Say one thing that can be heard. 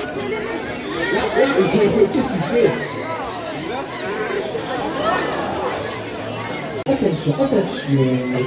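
Young men yell excitedly close by.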